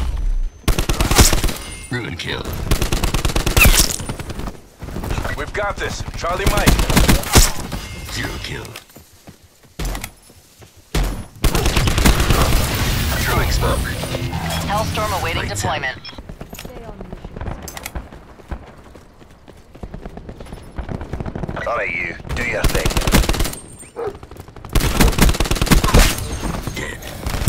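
Rapid gunfire bursts out in loud, sharp volleys.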